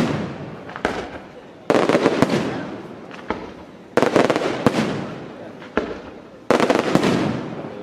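Fireworks crackle and fizz after each burst.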